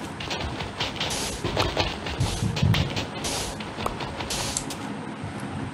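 Blocks of sand crunch repeatedly as they are dug away in a video game.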